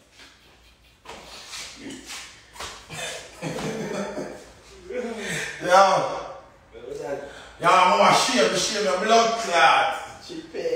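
A young man talks loudly and with animation close by.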